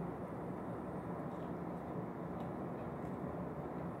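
A young man chews food noisily.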